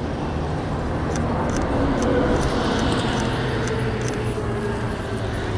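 A bus rumbles past close by.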